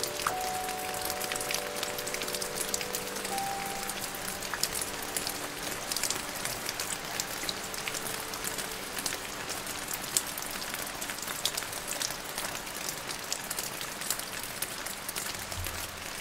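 Steady rain falls and patters on leaves and branches.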